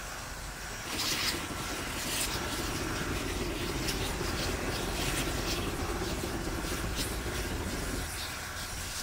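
Steam blasts loudly from a locomotive's valve.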